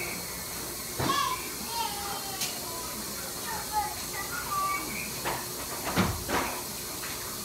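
Objects knock against a countertop.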